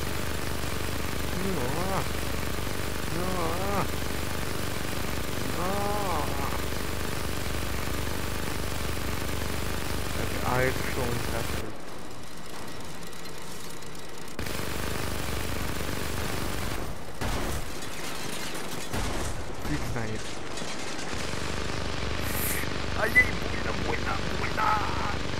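A heavy machine gun fires in long rapid bursts.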